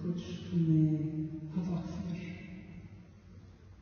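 A young woman sings into a microphone, holding a long note.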